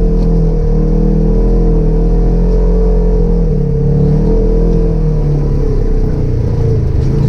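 A side-by-side UTV engine drones under load, rising and falling in pitch.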